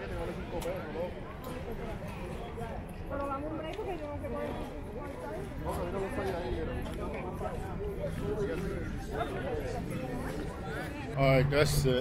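People chatter at an outdoor market.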